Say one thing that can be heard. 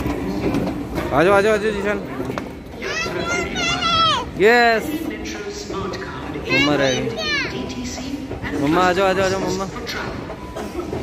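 A young child shouts and squeals excitedly close by.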